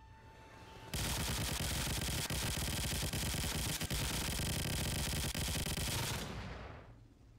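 A machine gun fires rapidly and loudly.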